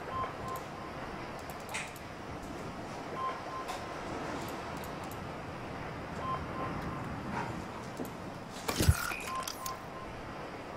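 Short soft electronic beeps sound in pairs.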